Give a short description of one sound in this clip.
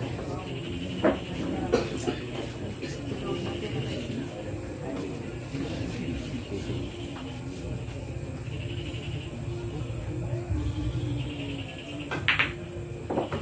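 Billiard balls click together on a pool table.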